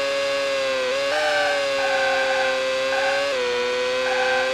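A racing car engine's pitch drops briefly as gears shift down and back up.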